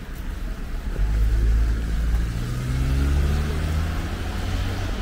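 A car engine drones and revs up as it passes.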